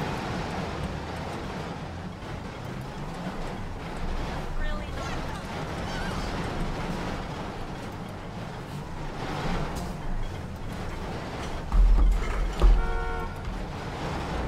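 A car engine roars and revs.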